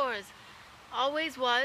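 A teenage girl speaks calmly, close by.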